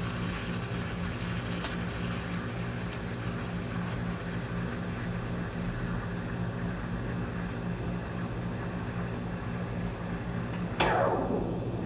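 A steam wand hisses steadily as it froths milk in a metal jug.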